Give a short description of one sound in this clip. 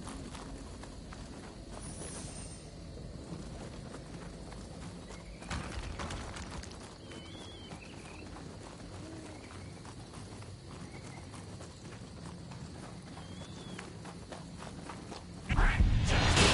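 Footsteps crunch on a forest floor.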